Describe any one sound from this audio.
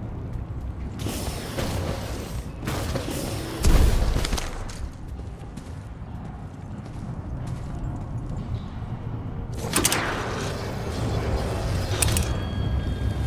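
A cable whirs loudly as someone slides along it.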